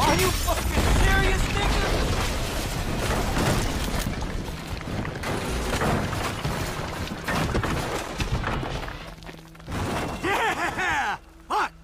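Rubble and debris tumble and clatter down a hillside.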